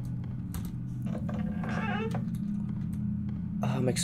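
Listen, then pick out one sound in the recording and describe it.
A wooden door creaks open.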